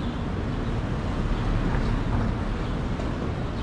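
A car drives by along the street.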